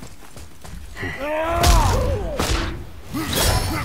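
A creature screeches and shrieks.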